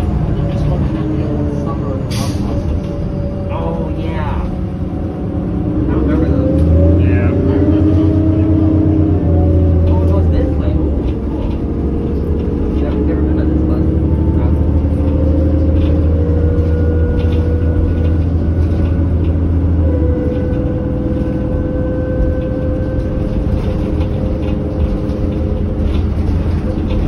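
Tyres roll on the road beneath a bus.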